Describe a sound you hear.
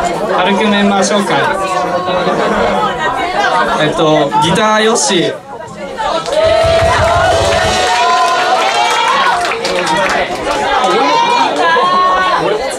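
A young man sings into a microphone through loudspeakers.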